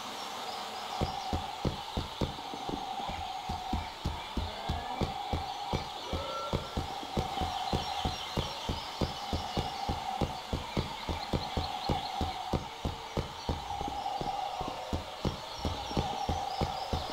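Footsteps patter quickly and steadily on stone.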